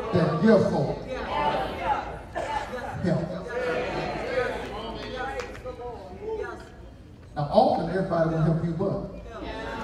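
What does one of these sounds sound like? A man preaches with animation into a microphone in a large echoing hall.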